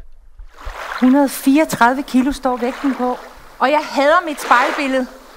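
A woman sings nearby in a clear, wavering voice.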